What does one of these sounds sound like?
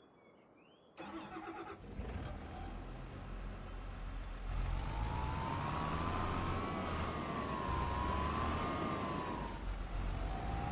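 A tractor engine rumbles and revs up as the tractor drives off.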